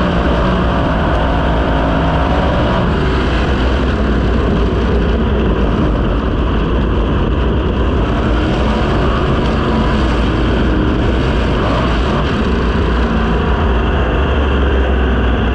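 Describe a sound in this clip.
Wind rushes hard past the open car.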